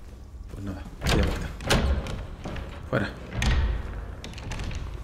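Footsteps thud slowly.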